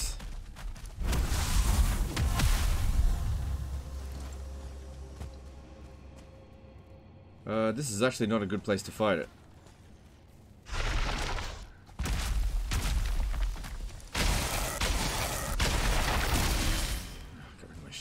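Magic blasts burst and crackle loudly.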